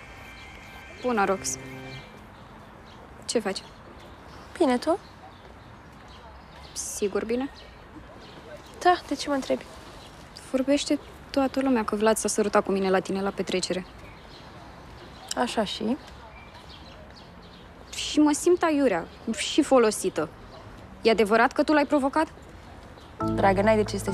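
A young woman speaks calmly and close by, in pauses.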